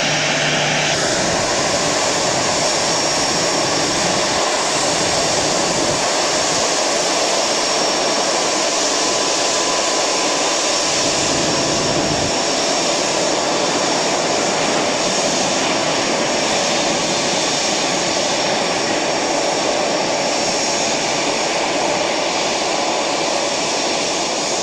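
A jet airliner's engines roar and whine steadily close by as it taxis.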